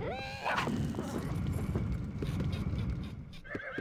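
A magic blast bursts with a sharp whoosh.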